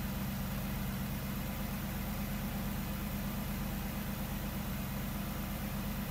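A car engine idles with a steady, deep exhaust burble.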